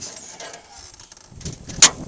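A fish thumps against the bottom of a boat.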